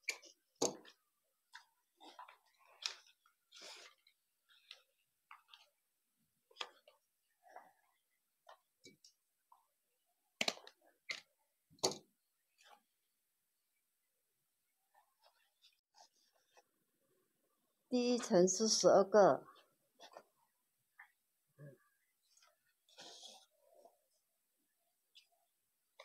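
Paper crinkles and rustles as it is folded and handled.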